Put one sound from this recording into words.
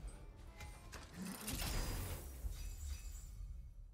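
A heavy chest lid creaks open.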